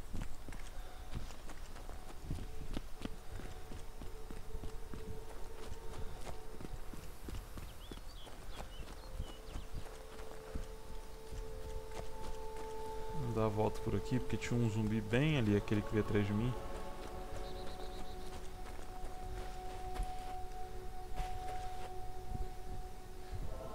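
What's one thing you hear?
Footsteps crunch steadily on gravel and dirt.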